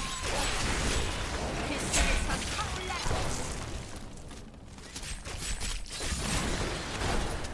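Magic bursts explode with booming impacts.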